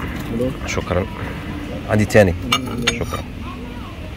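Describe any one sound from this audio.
Ceramic plates clink against each other.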